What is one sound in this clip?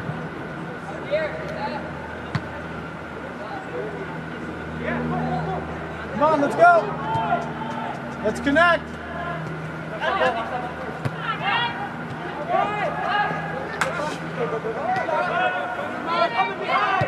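Young male players shout to each other across a large echoing hall.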